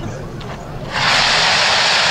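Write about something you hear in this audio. Fountain fireworks hiss loudly and steadily.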